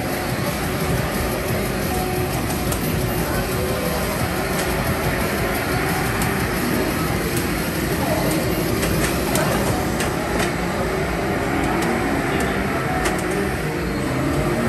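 Arcade racing games play loud engine roars through loudspeakers.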